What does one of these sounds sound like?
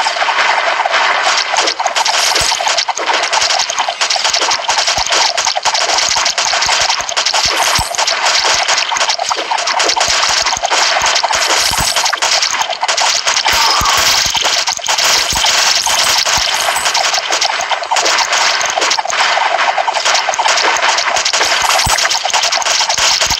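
Rapid electronic shots and hits crackle without a break.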